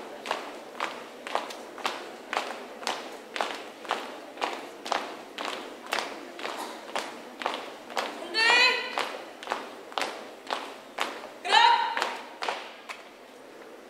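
Many feet stamp in unison as a group marches outdoors.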